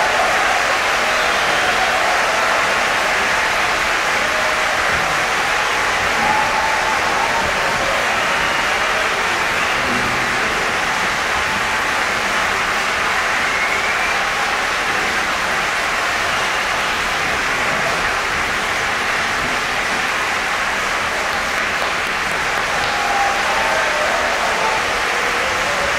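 A piano plays along with the choir.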